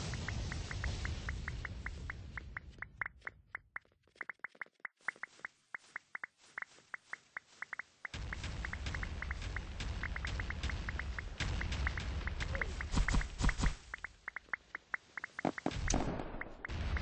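Quick, high clicking blips repeat rapidly as game items are picked up.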